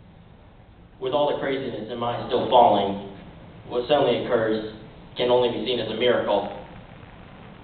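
A man speaks into a microphone over loudspeakers in a large room.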